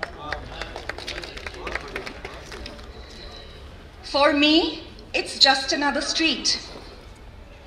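A young woman reads out through a microphone.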